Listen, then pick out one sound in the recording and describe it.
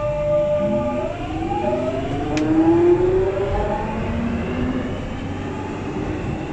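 A train pulls away with a rising electric whine.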